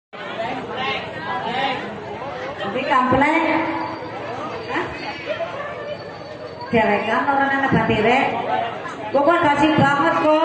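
A crowd of men, women and children chatter and call out nearby outdoors.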